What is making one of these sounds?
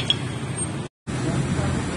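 Motorcycle engines rumble in heavy traffic.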